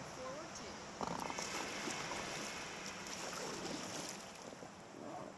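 Paddles splash and dip into calm water.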